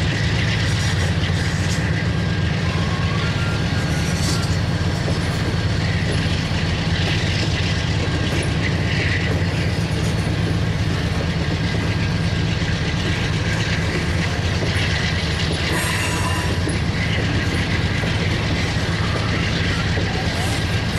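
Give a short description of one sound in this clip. Tank cars roll past on the rails with a steady rumble.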